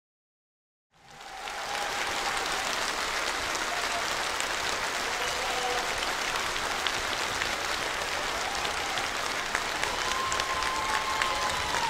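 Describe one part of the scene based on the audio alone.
A large audience applauds loudly and steadily.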